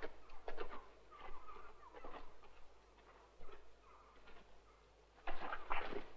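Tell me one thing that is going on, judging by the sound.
Footsteps brush through grass close by.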